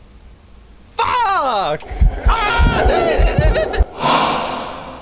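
A young man shouts and laughs loudly into a microphone.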